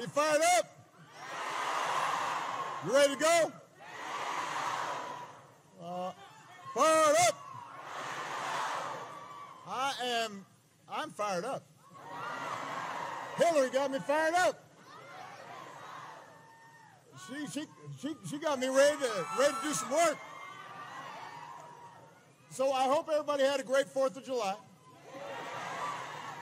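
A large crowd cheers and applauds between a man's phrases.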